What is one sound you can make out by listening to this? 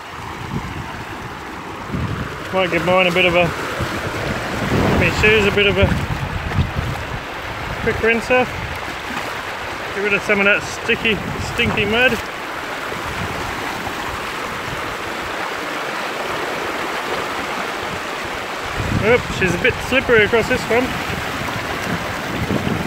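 Water rushes and splashes over rocks nearby.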